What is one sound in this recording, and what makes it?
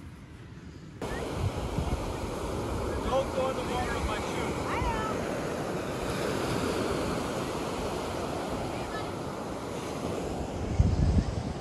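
Wind rushes and buffets outdoors.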